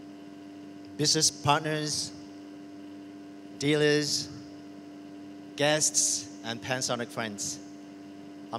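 A man speaks calmly into a microphone over loudspeakers, with pauses between phrases.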